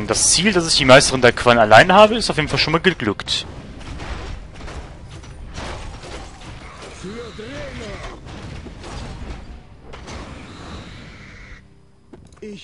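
Swords clash and clang in a busy battle.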